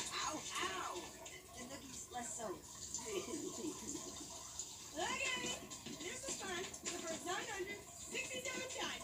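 A television plays a cartoon soundtrack through small speakers.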